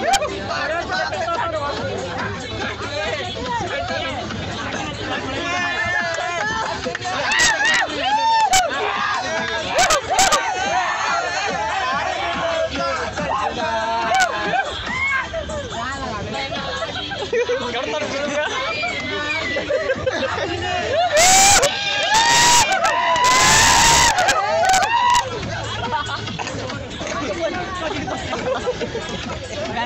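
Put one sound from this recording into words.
A crowd of young men shout and cheer loudly.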